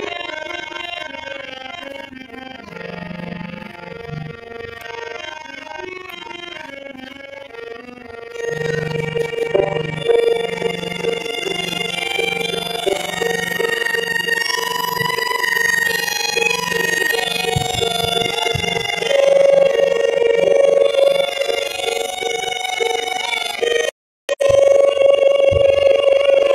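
A harmonium plays a steady drone.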